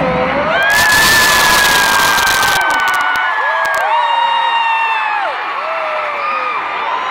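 A huge crowd cheers and screams in a vast open stadium.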